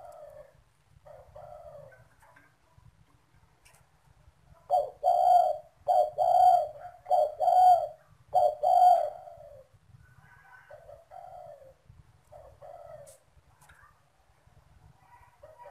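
A dove coos repeatedly nearby, loudest in a rapid run of calls.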